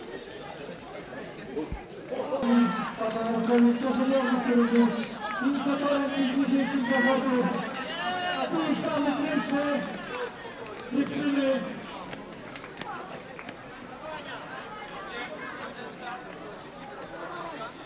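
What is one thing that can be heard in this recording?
Runners' shoes patter on asphalt.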